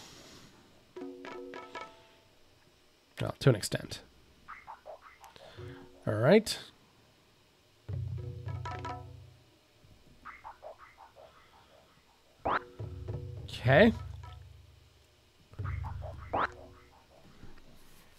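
Short electronic game tones beep and chime.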